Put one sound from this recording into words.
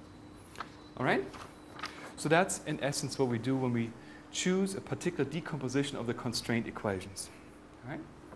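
A man speaks calmly, lecturing.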